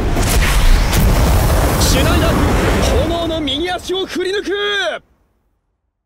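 A fiery blast roars loudly.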